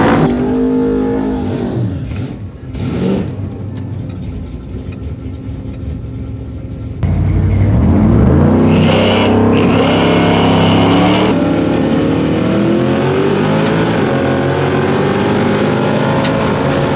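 A car engine rumbles and revs up loudly, rising in pitch as the car accelerates.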